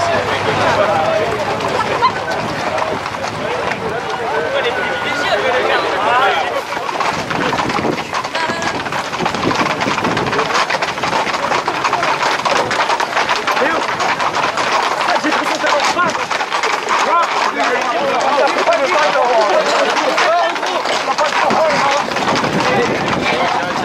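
Horses' hooves clop on a paved road.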